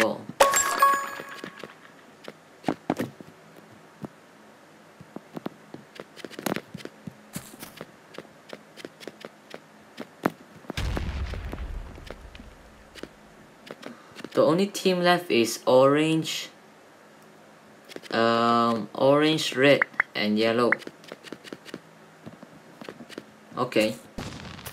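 Game footsteps patter as a character runs.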